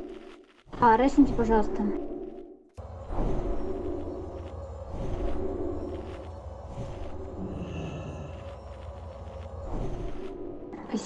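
Magic spells whoosh and crackle during a fantasy battle.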